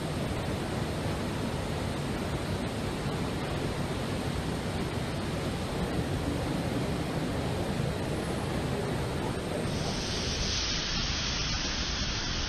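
A spray gun hisses as paint is sprayed.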